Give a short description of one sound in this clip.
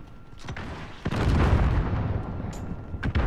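An explosion booms nearby and rumbles away.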